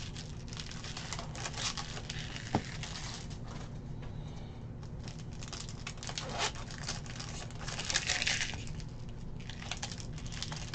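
Trading cards rustle and slide against each other as they are handled.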